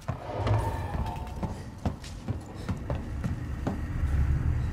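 Footsteps clank steadily on a metal floor.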